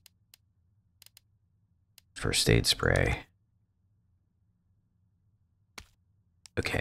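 Soft menu clicks tick as a selection moves.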